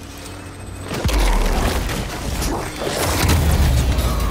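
Electric energy crackles and zaps.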